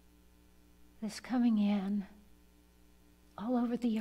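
An elderly woman speaks slowly into a microphone.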